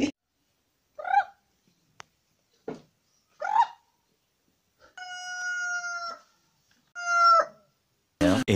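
Chickens cluck and call outdoors.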